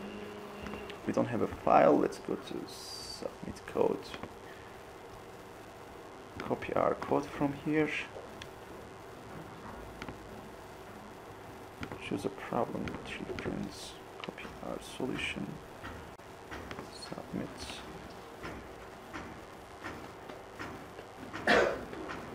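A young man speaks calmly into a nearby microphone.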